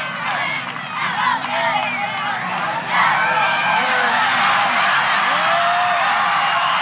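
A crowd of spectators cheers and shouts outdoors, growing louder partway through.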